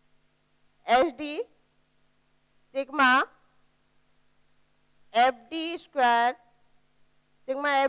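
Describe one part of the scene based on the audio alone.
A woman speaks in short phrases through a small microphone, explaining clearly.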